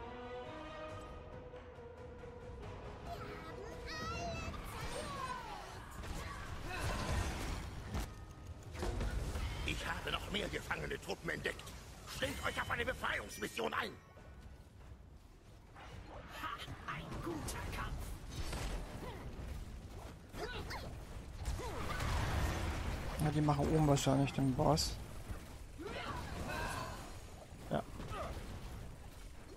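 Game spell effects crackle and burst in a fast battle.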